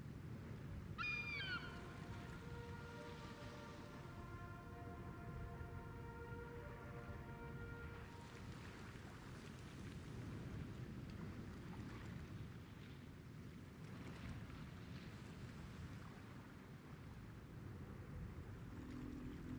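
Waves wash softly against a ship's hull.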